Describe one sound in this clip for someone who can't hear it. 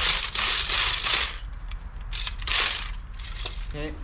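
A man stirs paint in a bucket with a brush.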